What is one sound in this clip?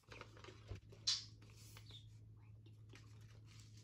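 Paper rustles as hands unfold a paper bag.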